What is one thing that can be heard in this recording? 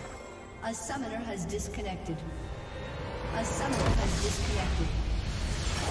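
Game spell effects crackle and whoosh in a fight.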